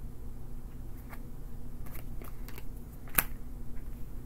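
Playing cards click and slide on a table.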